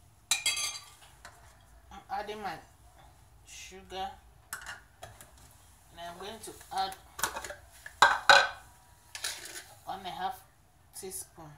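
Powder pours from a small cup into a bowl.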